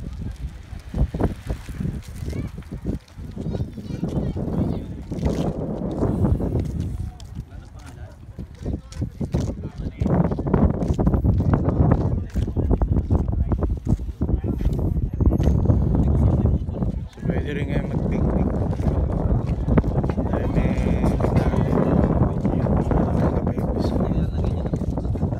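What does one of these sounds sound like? Bicycles roll past on concrete.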